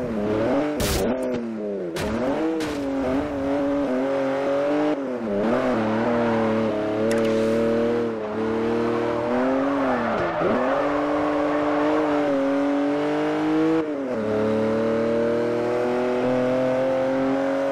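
A car engine roars loudly, revving up and dropping as gears change.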